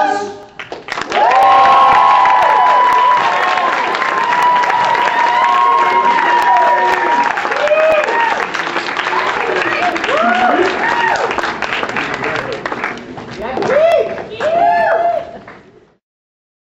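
A crowd of young people cheers and whoops loudly.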